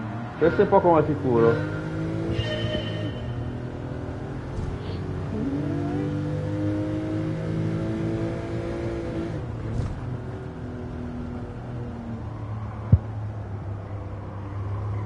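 A racing car engine revs high and rises through the gears.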